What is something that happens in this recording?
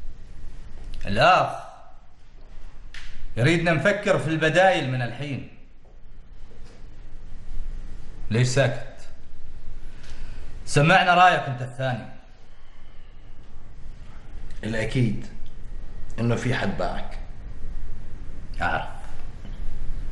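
Men speak calmly in turns in a quiet room.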